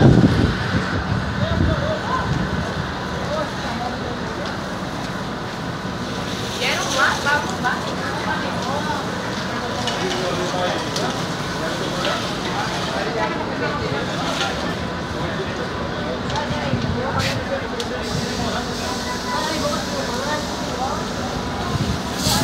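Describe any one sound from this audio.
Men and women nearby talk and shout with agitation outdoors.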